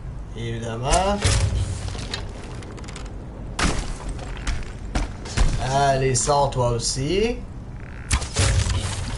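A bow looses an arrow.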